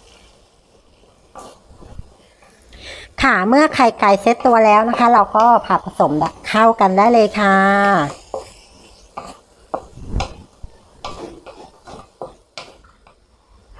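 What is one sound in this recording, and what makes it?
A wooden spatula scrapes and taps against a metal wok.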